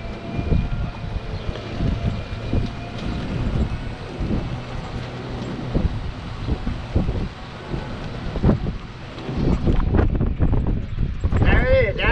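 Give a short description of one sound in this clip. Wind rumbles and buffets loudly against the microphone while moving outdoors.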